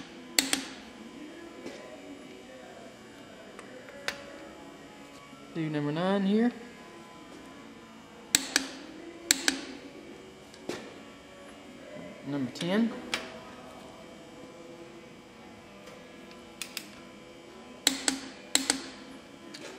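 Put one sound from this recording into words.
Metal tools clink and tap against an engine part.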